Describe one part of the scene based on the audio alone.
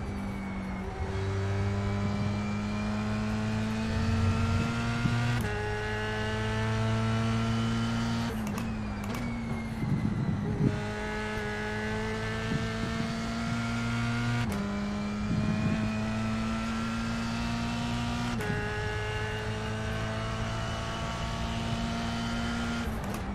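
A racing car engine revs hard, rising in pitch and dropping with each gear change.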